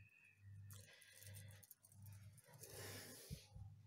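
Beads on a wire bracelet click together as hands turn it.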